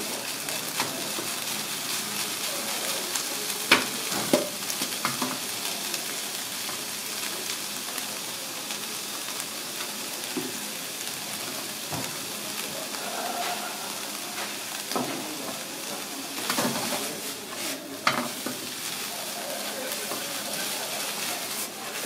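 Rice sizzles steadily in a hot pan.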